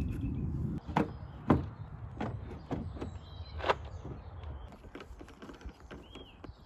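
Plastic parts knock and click as they are handled.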